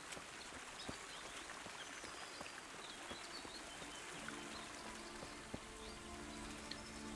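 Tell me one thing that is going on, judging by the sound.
A stream trickles and babbles over stones.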